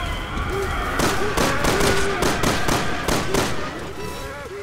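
Gunshots ring out in quick succession.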